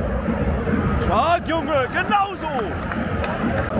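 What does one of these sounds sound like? Fans cheer and whistle loudly.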